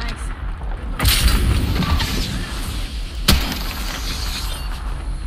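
A smoke canister bursts and hisses.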